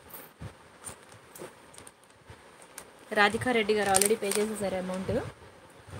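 Plastic packets rustle softly as a hand touches them.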